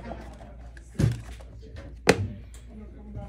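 A plastic deck box clicks shut.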